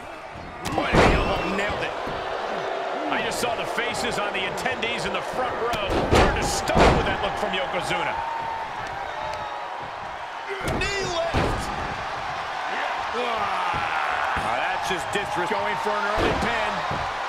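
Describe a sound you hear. Heavy bodies slam hard onto a wrestling ring mat.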